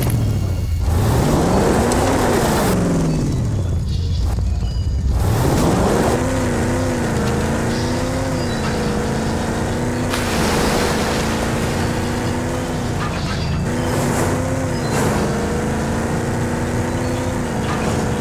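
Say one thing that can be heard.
A vehicle engine hums and revs up and down as it drives.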